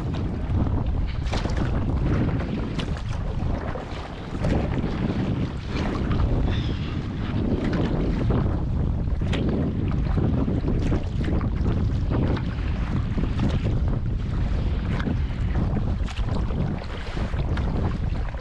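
A paddle splashes and dips into the water.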